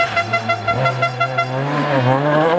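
A car engine stutters in rapid, even pulses.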